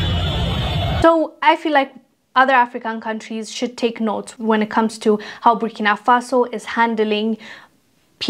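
A young woman speaks clearly and steadily into a microphone.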